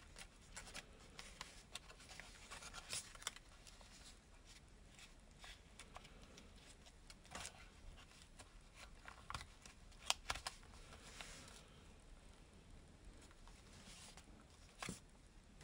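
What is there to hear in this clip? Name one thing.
Stiff paper crinkles and rustles as it is folded by hand.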